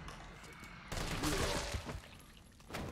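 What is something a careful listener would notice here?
A rifle fires a loud burst of shots.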